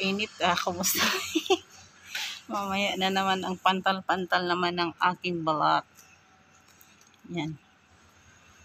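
A woman speaks close by in a lively voice.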